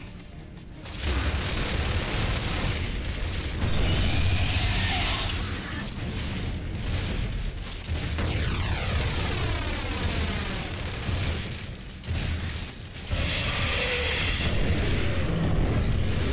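Shotgun blasts boom repeatedly.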